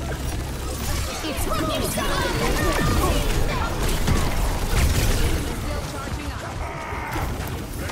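Loud explosions boom and crackle.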